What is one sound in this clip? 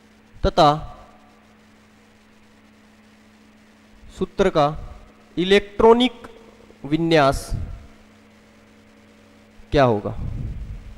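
A young man speaks in short bursts through a close microphone, explaining calmly.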